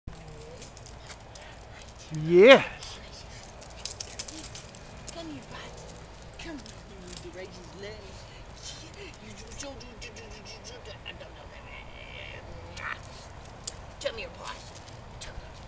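A woman talks affectionately to dogs, close by.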